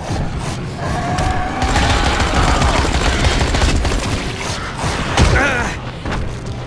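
A monster snarls and screeches up close.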